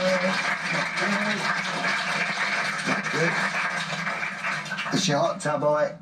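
An audience applauds through a television speaker.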